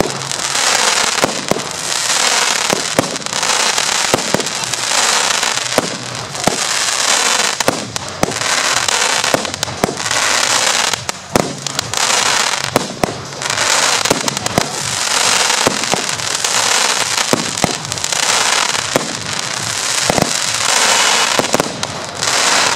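Firework shells from a battery burst with sharp bangs.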